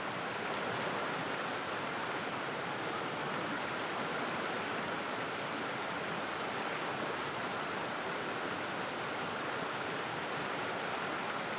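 A stream rushes steadily over rocks close by.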